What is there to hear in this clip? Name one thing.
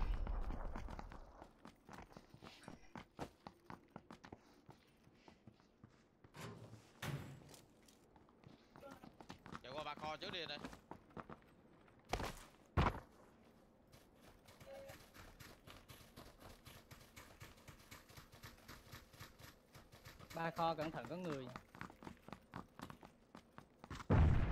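Quick footsteps patter steadily on the ground.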